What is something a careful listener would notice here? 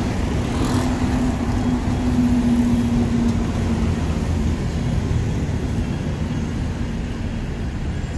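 Cars drive past close by.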